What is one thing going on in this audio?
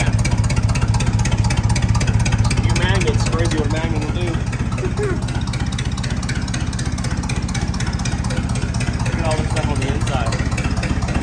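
An old engine chugs and clatters rapidly and steadily close by.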